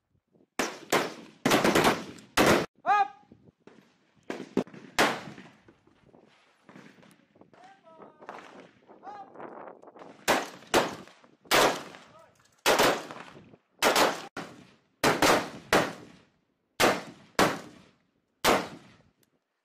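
Rifle shots crack loudly outdoors, one at a time, with short echoes.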